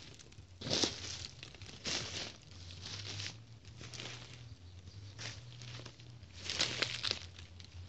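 A cat walks through dry leaves with a soft rustle.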